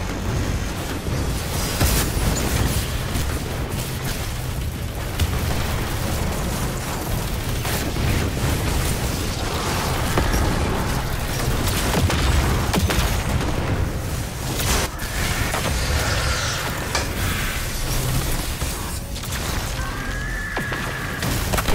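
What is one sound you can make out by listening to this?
Rapid gunfire rattles and booms.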